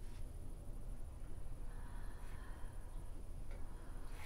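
A young woman breathes heavily and sobs quietly.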